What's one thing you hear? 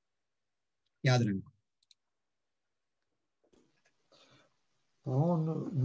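An elderly man speaks calmly over an online call, in short bursts.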